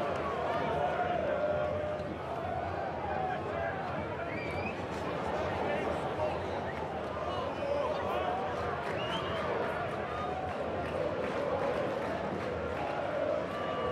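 A large stadium crowd cheers and chants steadily.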